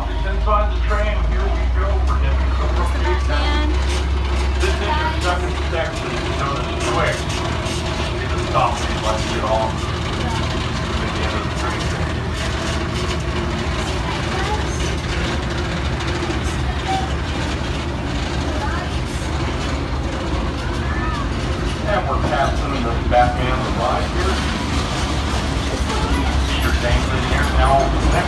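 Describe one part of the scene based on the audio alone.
A vehicle rumbles steadily as it rolls along.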